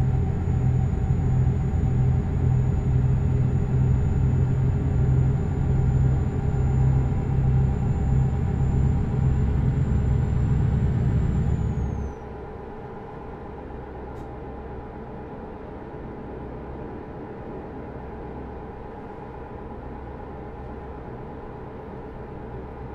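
A truck engine drones steadily as it drives along.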